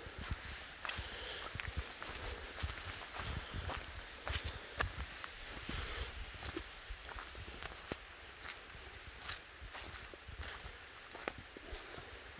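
Footsteps crunch and thud on a soft forest path.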